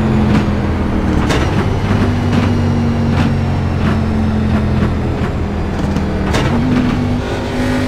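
Tyres rumble over the track surface.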